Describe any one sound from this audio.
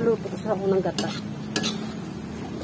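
A spatula scrapes and stirs grated food in a metal wok.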